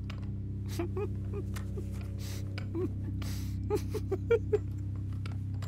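A middle-aged man chuckles softly, close by.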